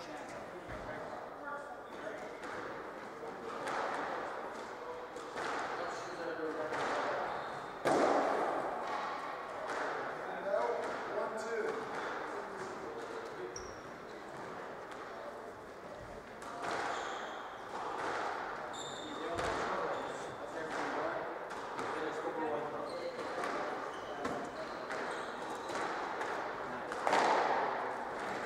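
A squash ball smacks sharply against the walls, echoing around an enclosed court.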